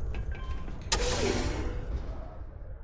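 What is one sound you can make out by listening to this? A heavy sliding door hisses open.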